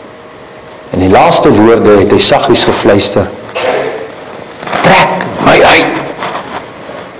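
A man speaks with emphasis into a microphone, his voice echoing in a large hall.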